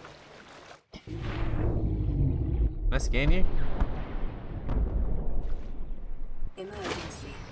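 Water splashes and bubbles as a swimmer dives under and surfaces.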